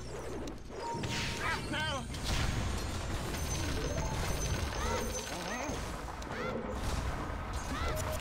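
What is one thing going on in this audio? Magic blasts and blows crash in a busy fantasy battle.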